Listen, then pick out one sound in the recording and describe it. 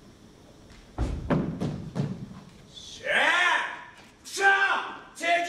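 A man shouts with strong emotion.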